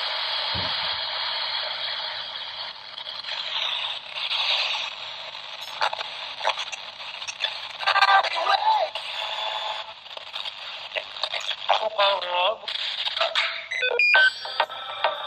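A small radio hisses with static through a tiny speaker.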